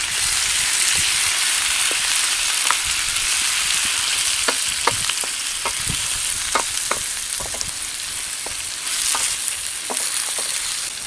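A wooden spatula scrapes and clicks against a metal pan.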